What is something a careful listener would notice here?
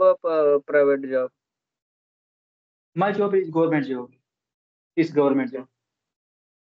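A second man answers over an online call, speaking in short bursts.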